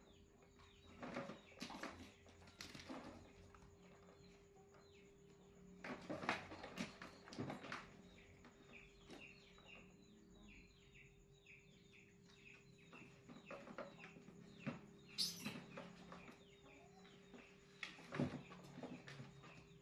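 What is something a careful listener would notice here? A plastic rocking horse knocks and rattles.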